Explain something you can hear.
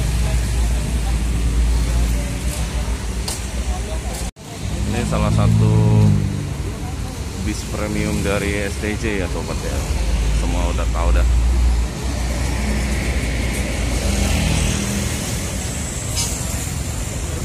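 A bus engine idles with a low, steady rumble close by.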